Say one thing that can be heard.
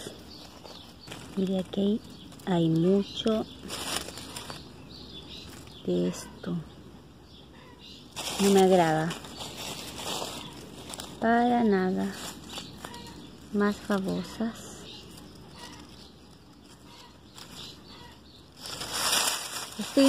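Fingers rustle through dry leaves and soil close by.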